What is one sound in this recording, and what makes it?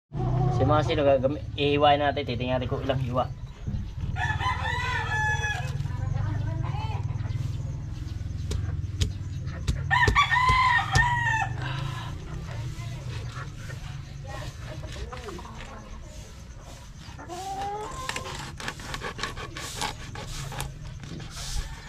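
A knife scrapes and taps on a wooden board.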